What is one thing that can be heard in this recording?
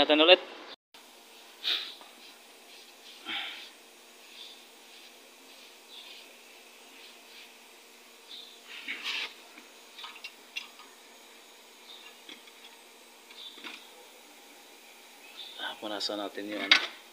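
Metal parts clink and scrape as a hand works on a car's wheel hub.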